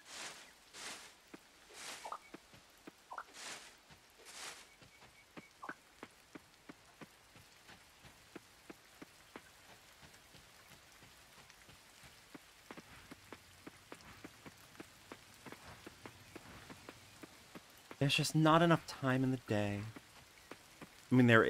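Footsteps patter steadily on a path.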